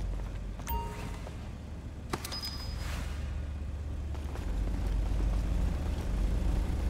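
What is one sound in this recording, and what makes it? Footsteps walk on a hard floor.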